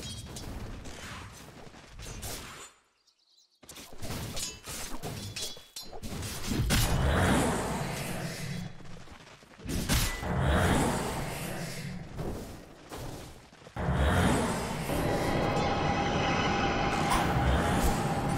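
Game spell effects and weapon hits crash and whoosh in a busy fight.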